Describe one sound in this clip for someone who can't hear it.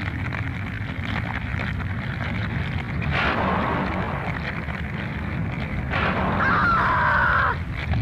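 A fire roars and crackles loudly.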